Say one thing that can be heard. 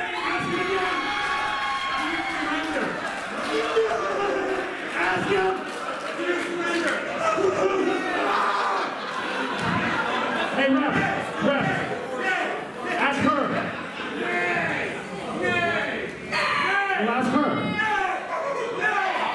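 A young man shouts with animation through a microphone and loudspeakers.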